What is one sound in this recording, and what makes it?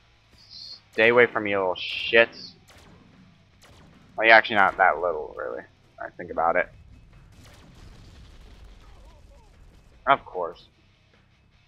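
A young man speaks with animation into a microphone, in short bursts.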